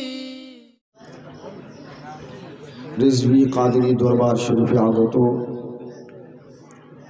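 A man sings a chant loudly through a microphone, heard over loudspeakers.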